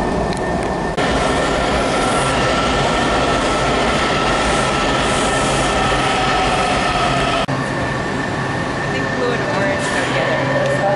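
Train brakes squeal with a steady high whine as the train slows.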